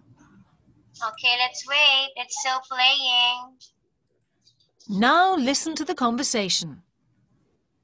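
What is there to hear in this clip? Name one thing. A woman speaks clearly over an online call.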